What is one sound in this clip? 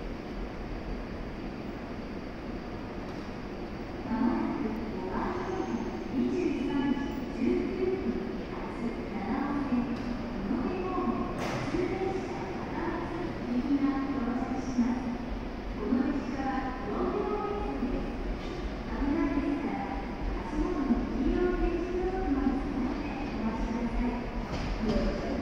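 A stopped electric train hums steadily.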